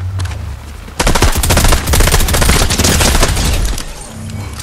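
Rapid gunshots crack loudly in a long burst.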